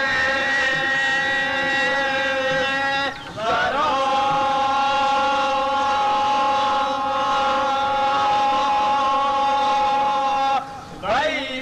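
A man sings long held notes into a microphone through loudspeakers.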